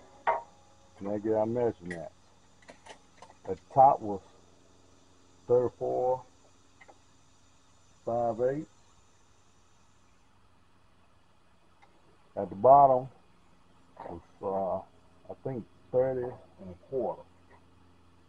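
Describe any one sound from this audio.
A man talks calmly nearby in short bursts.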